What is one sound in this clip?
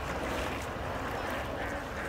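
Water splashes as a hand slaps the surface.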